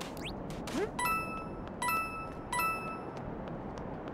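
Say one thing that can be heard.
Bright coin chimes ring out, one after another.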